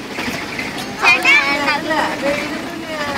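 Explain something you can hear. A young child speaks in a high, excited voice.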